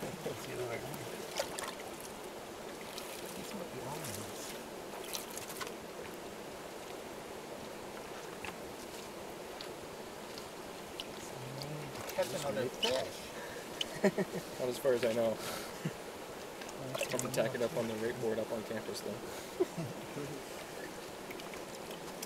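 Water sloshes and splashes in a bucket as hands scrub inside it.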